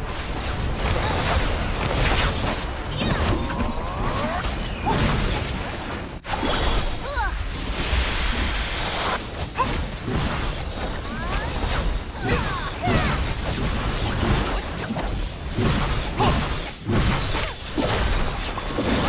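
Spell blasts and sword clashes crackle and boom throughout a hectic fight.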